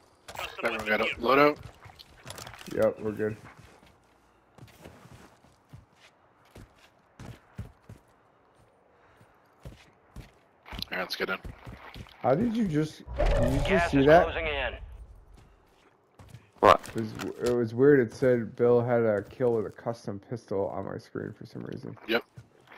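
Footsteps crunch on dirt and grass.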